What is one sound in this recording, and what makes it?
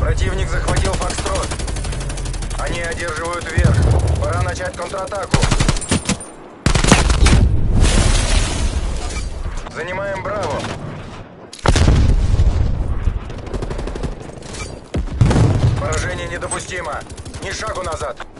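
Rifles fire rapid bursts of shots.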